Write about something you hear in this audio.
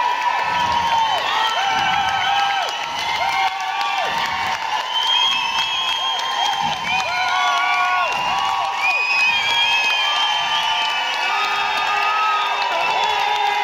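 A large crowd cheers and whistles loudly in a big hall.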